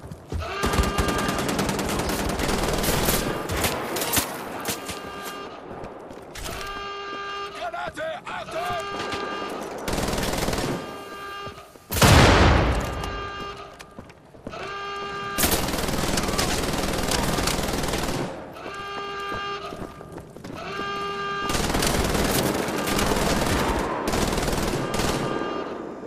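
A heavy automatic gun fires in rapid bursts.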